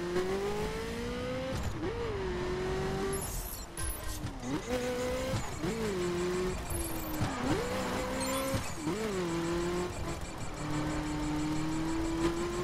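A sports car engine revs up and down as gears shift.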